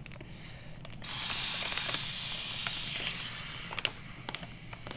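A man blows air through a straw into a plastic bag.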